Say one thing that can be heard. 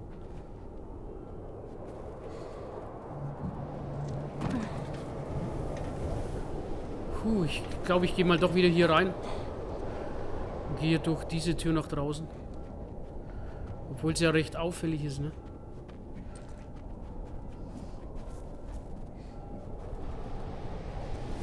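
Wind howls in a snowstorm.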